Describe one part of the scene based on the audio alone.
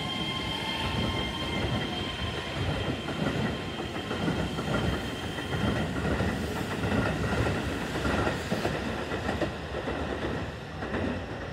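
A train rumbles past close by on the tracks, its wheels clattering.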